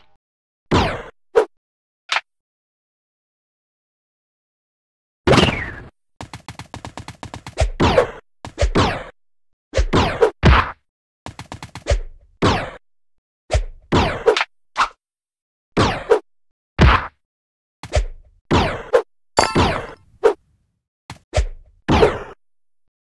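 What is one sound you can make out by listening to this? A game character jumps with short whooshing sounds, again and again.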